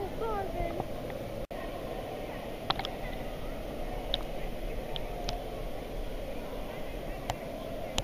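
Water laps and splashes close by in a large echoing hall.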